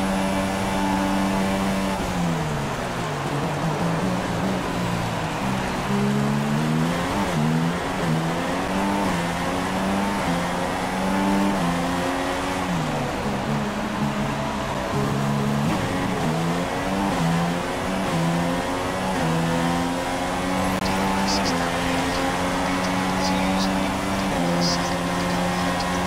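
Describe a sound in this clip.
A racing car engine screams at high revs, rising and dropping in pitch as the gears change.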